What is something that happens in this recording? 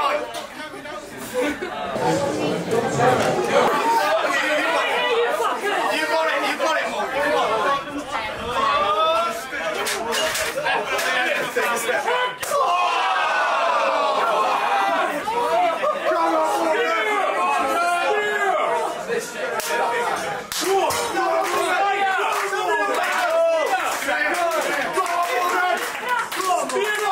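A crowd of men and women chatter and cheer loudly outdoors.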